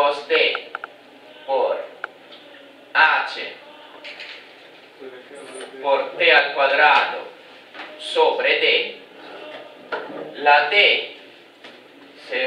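A young man speaks calmly, explaining step by step.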